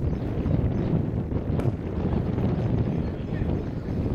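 A cricket bat strikes a ball in the distance.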